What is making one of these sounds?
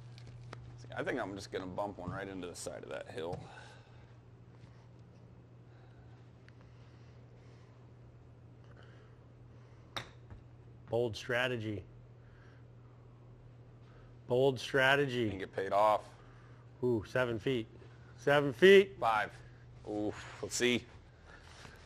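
A man talks casually into a nearby microphone, in short bursts.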